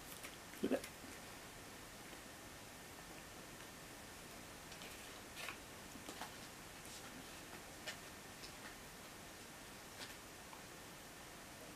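Paper rustles softly in a man's hands.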